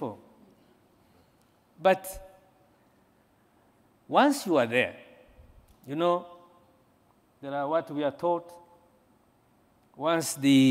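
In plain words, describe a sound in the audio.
A man speaks calmly into a microphone in short phrases, with pauses between them.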